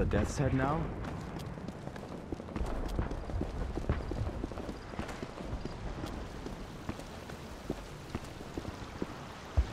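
Footsteps tread on hard stone ground.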